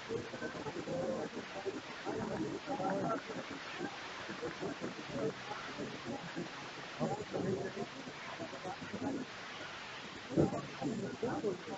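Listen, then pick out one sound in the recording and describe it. A large crowd of men and women chatters nearby outdoors.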